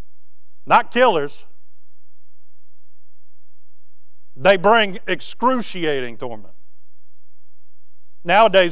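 A man speaks calmly through a microphone, with long pauses between phrases.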